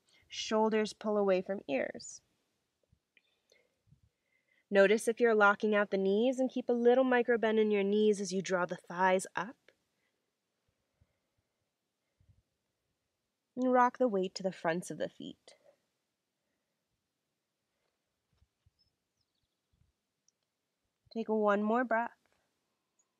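A woman speaks calmly, giving slow instructions close to a microphone.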